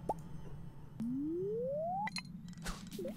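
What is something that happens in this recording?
A rising tone sounds as a fishing rod winds up for a cast.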